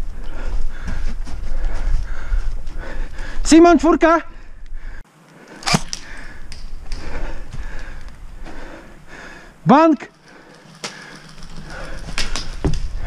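A paintball marker fires in quick, sharp pops.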